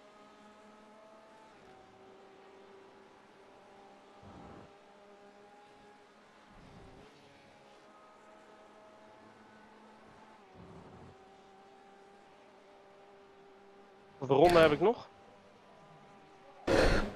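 A racing car engine hums steadily, shifting pitch with the speed.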